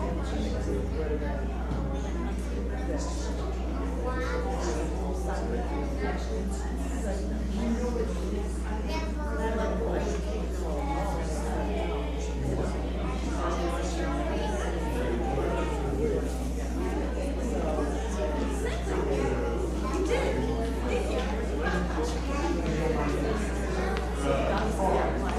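Men and women chat quietly at a distance in a large echoing hall.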